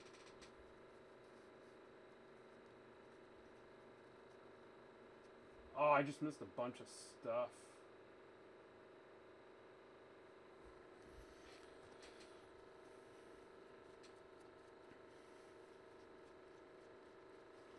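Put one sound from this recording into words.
Trading cards rustle and flick softly as a stack is sorted by hand.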